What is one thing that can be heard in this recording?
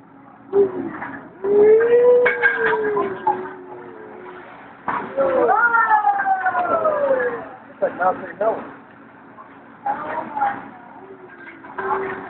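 Flames roar up from a hot griddle with a whoosh.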